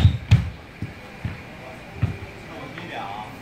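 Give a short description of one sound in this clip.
Feet thump and shuffle on a wooden floor.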